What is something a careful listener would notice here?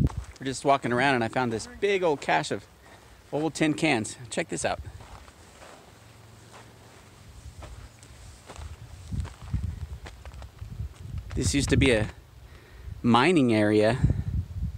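A man talks casually, close by.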